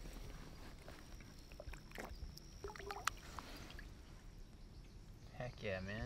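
Water splashes softly as a fish is released.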